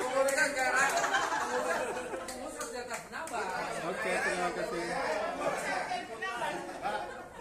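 A crowd of men and women chatter and laugh close by in a room.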